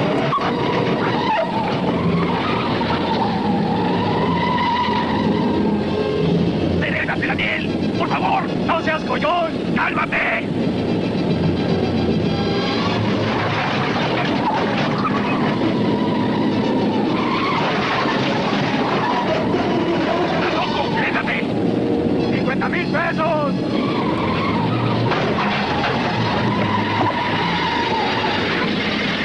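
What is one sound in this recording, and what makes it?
Heavy truck engines roar close by.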